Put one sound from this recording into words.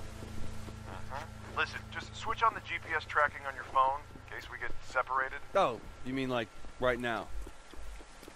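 A man speaks calmly over a radio.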